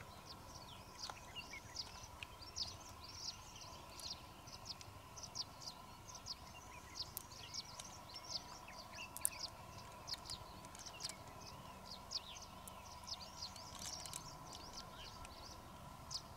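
A knife scrapes and clicks against a shell.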